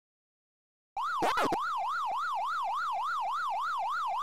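An arcade game's siren warbles steadily up and down.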